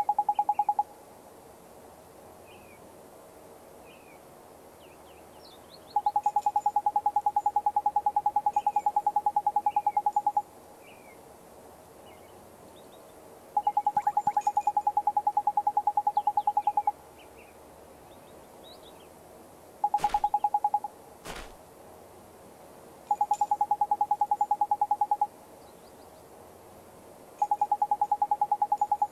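Rapid electronic blips chatter in bursts.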